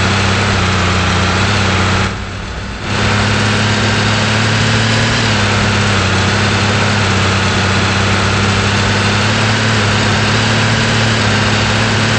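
A truck engine drones steadily as the truck speeds up.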